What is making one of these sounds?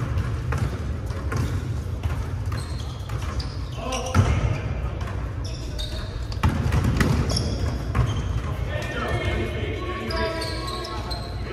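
Young players call out to each other across the echoing gym.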